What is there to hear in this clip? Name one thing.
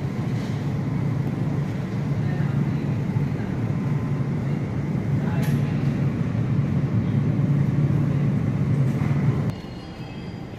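A refrigerated display case hums steadily.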